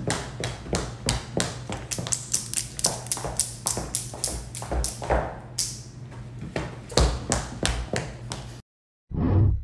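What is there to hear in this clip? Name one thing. High heels tap on a wooden floor.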